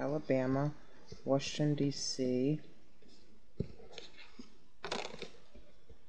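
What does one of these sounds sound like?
Paper cards slide and rustle across a tabletop.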